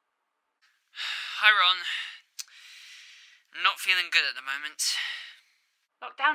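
Another young man speaks slowly and calmly over an online call.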